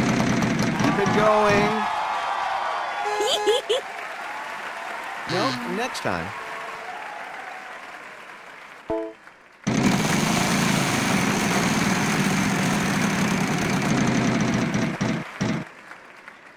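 A prize wheel spins with rapid clicking.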